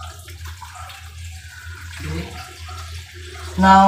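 Water pours from a bottle into a pan.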